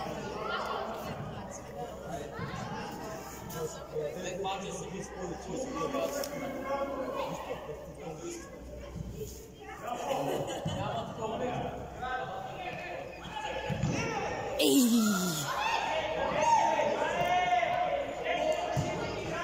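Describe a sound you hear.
Children shout and call out across a large echoing hall.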